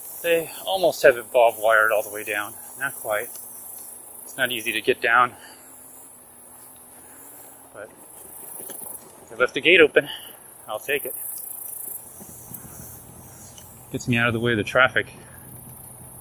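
A man speaks calmly in short bursts close to the microphone.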